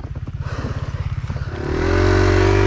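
A dirt bike engine idles close by with a low, fast chugging.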